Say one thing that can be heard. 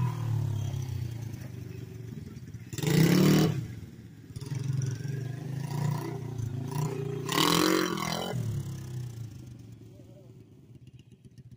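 A small motorbike engine buzzes and revs as it rides around nearby.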